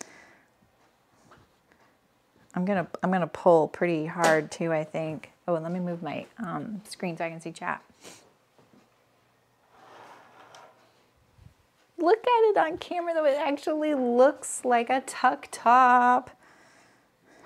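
Hands smooth cloth flat with a soft rustle.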